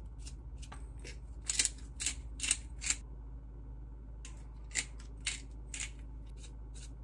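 A pepper grinder crackles in short bursts.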